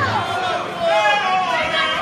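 A woman shouts loudly close by.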